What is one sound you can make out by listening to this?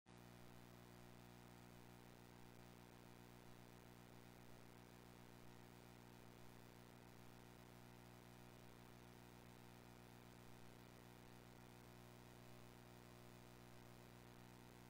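A low electrical hum drones steadily from audio equipment.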